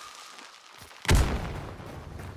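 A gunshot booms once.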